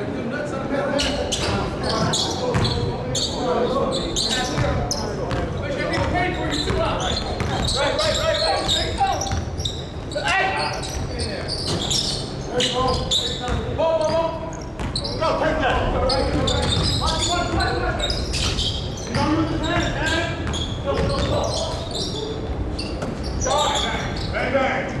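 Men shout and call out to each other during play.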